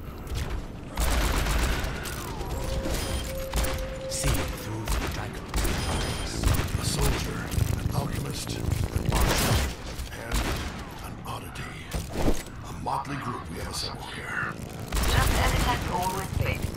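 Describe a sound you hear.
A revolver fires repeated loud shots.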